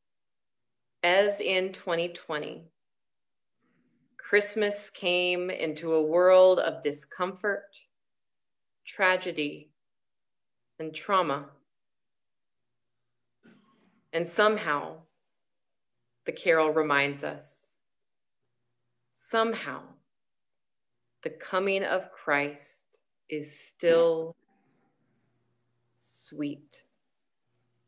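A young woman speaks calmly in short phrases over an online call.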